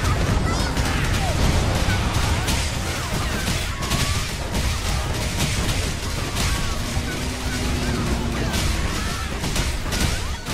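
Game effects crash and whoosh during a battle.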